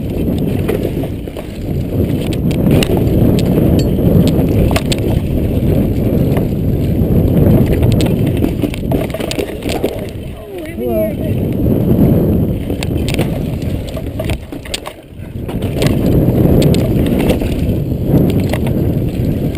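Bike tyres rumble and crunch over a rough dirt trail.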